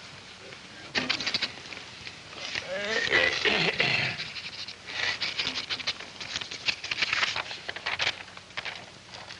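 A young man speaks in a strained, pained voice.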